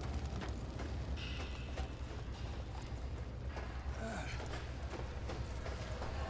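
Small fires crackle nearby.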